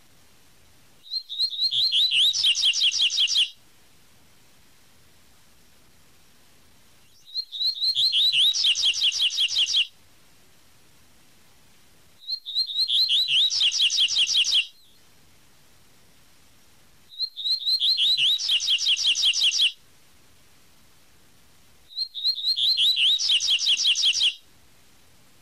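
A small bird sings a loud, rapid trilling song in repeated bursts, each a few seconds long.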